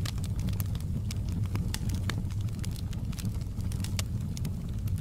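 Burning logs crackle and pop.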